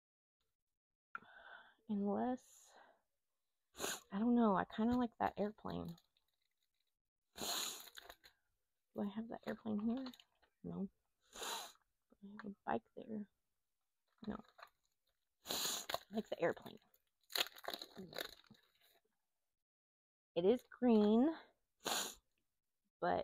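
A plastic sticker sheet crinkles and rustles in hands.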